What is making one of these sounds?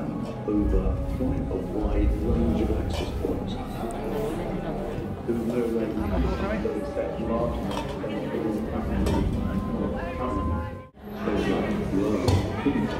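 A crowd chatters nearby in an echoing indoor space.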